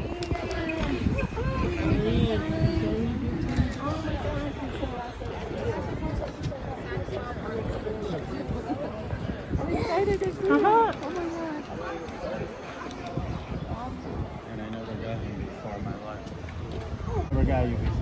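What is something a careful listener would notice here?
People talk nearby outdoors.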